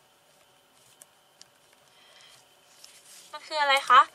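A sheet of paper rustles as it slides away.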